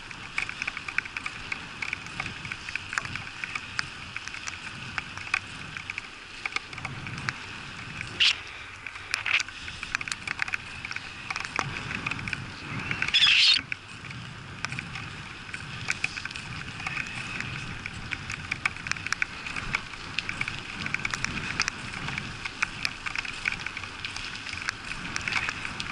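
Bicycle tyres hiss steadily on a wet road.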